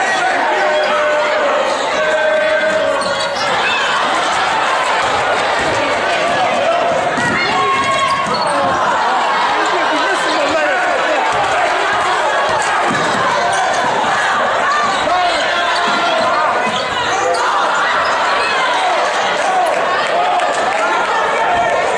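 Sneakers squeak sharply on the wooden court.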